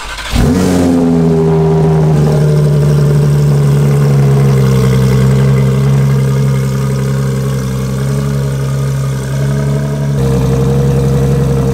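A sports car engine idles with a deep, steady rumble through the exhaust.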